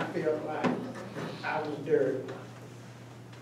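An elderly man speaks aloud nearby.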